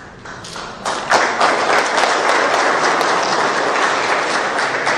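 A crowd applauds in an echoing hall.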